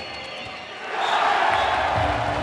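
A young man shouts in triumph.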